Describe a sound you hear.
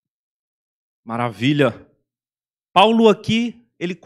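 A young man speaks calmly into a microphone, heard through a loudspeaker.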